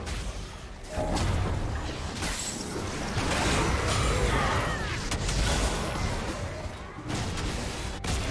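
Spell blasts and impacts crackle and whoosh in a fight.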